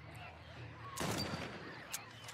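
A rifle shot cracks out.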